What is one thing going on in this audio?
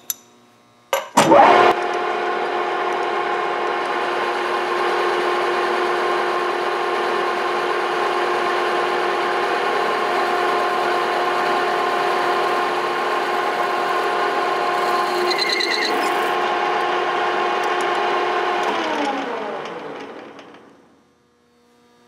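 A lathe motor starts, hums steadily at speed, then winds down to a stop.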